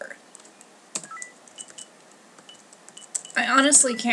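Short electronic beeps sound from a game menu.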